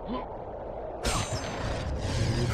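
A magical burst whooshes as a chest opens.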